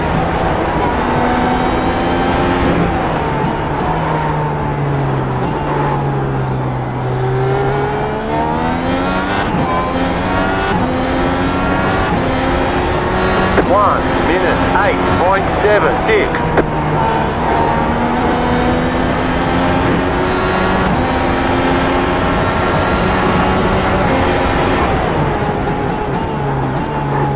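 A racing car engine roars, revving up through the gears and dropping in pitch as it slows for corners.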